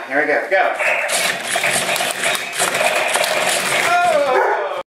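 Small toy robot motors whir as the robots roll and swing their arms.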